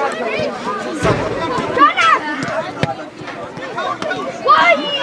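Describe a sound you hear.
A football thuds as a player kicks it.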